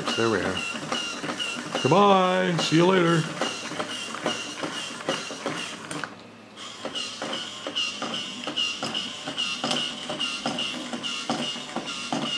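A toy robot gives out short, repeated electronic chirps.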